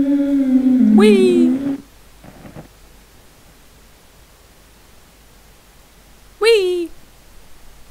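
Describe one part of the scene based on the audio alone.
A young man screams loudly and close into a microphone.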